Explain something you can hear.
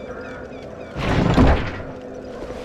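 A heavy wooden chest lid creaks open.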